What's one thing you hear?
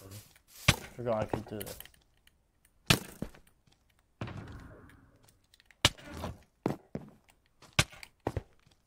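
Stone blocks thud sharply as they are placed.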